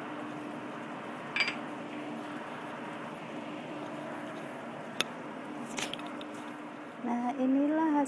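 Food sizzles and bubbles softly in a frying pan.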